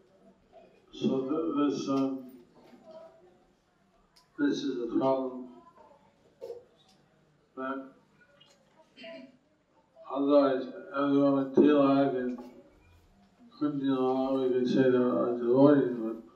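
A middle-aged man speaks slowly into a microphone, with pauses, heard close through a loudspeaker.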